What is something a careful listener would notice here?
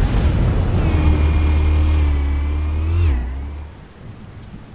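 A deep explosion rumbles and fades.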